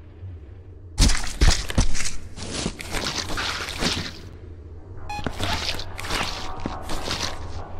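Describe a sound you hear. Heavy wet impacts splatter against a wall.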